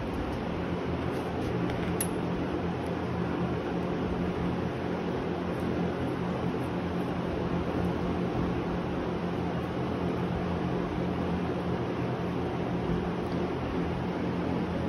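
Thin metal gauge blades clink softly in a hand.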